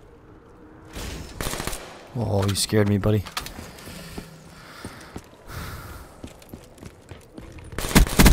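Gunfire rattles in short, sharp bursts.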